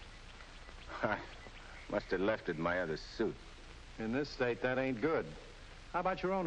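Another man answers calmly, close by.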